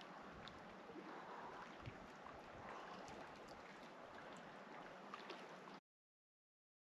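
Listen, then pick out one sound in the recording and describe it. Water laps and ripples gently around a swimmer.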